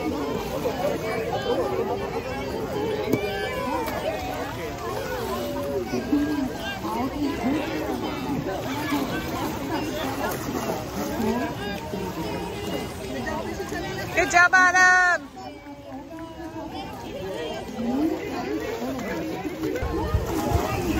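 Water splashes and laps gently.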